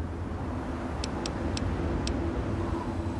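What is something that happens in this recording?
Soft menu clicks tick several times.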